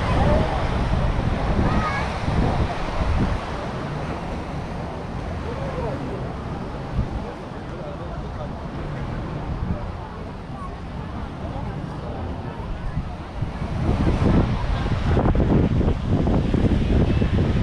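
Wind blows across the open outdoors, rumbling against the microphone.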